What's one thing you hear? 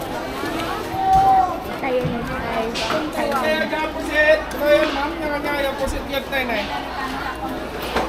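Men and women talk nearby with animation.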